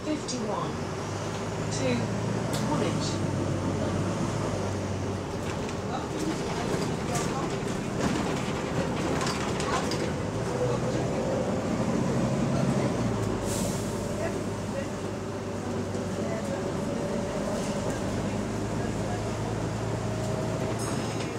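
A bus engine hums and drones steadily.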